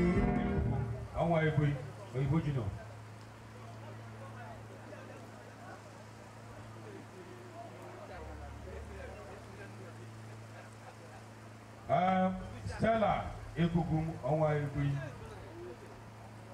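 A man speaks loudly through a microphone and loudspeaker outdoors.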